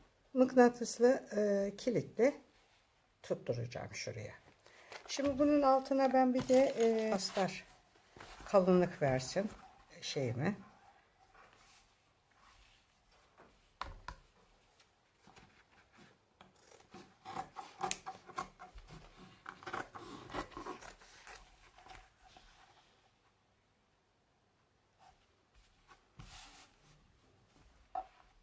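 Leather and felt rustle as they are handled and smoothed.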